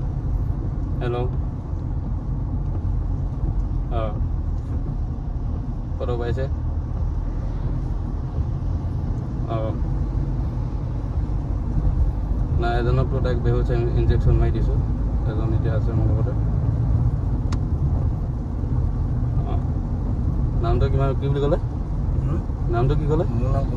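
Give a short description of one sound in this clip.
A young man speaks on a phone in short bursts, close by.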